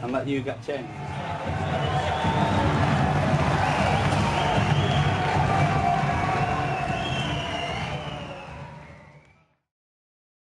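A large crowd murmurs in an echoing hall.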